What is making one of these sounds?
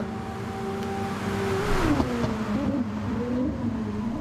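Water sprays and hisses under the tyres.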